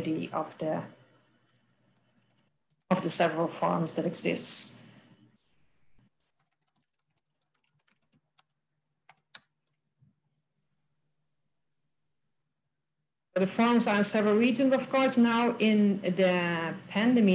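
A woman speaks calmly over an online call, with pauses.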